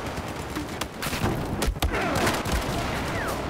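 An explosion booms close by.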